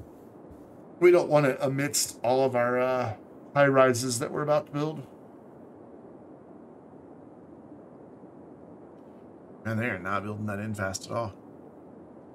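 A man talks into a close microphone in short, casual bursts.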